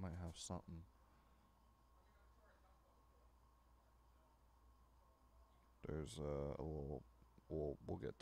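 Cards click and slide against each other.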